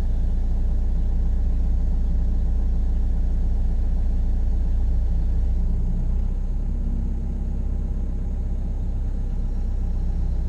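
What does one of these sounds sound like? A diesel engine rumbles steadily close by, heard from inside a cab.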